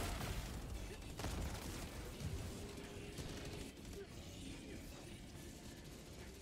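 Heavy footsteps thud across grass at a run.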